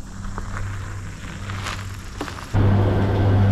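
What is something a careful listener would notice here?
Bicycle tyres roll and crunch over a dirt track.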